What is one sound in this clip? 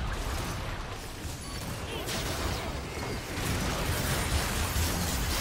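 Game spell effects crackle and burst in a fight.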